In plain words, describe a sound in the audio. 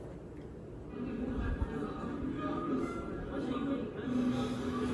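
Music plays softly from a loudspeaker.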